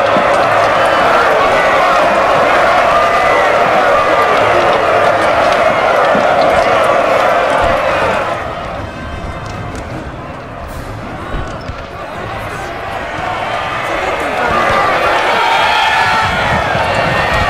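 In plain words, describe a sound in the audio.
A dense battle din of many shouting soldiers and clashing arms roars close by.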